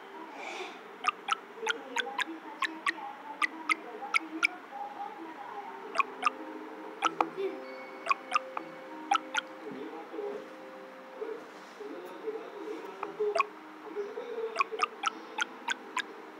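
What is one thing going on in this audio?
Short popping blips sound as items are collected.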